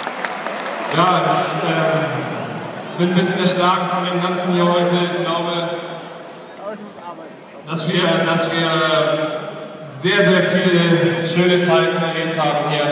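A large crowd sings a chant together in loud, swelling bursts.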